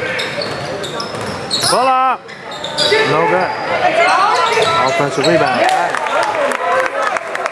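A crowd of spectators shouts and cheers in an echoing gym.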